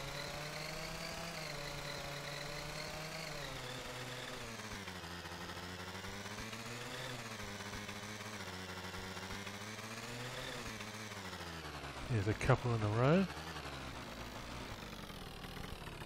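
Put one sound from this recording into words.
A scooter engine hums steadily, rising and falling in pitch as it speeds up and slows down.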